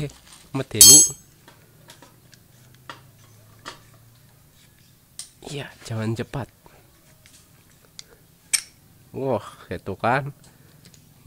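Metal tool parts click and clink as they are fitted together by hand.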